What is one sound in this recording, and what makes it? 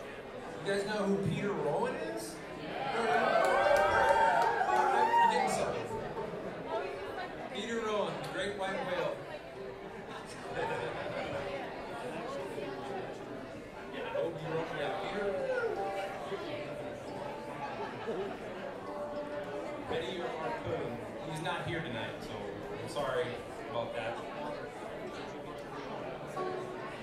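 A band plays lively acoustic string music.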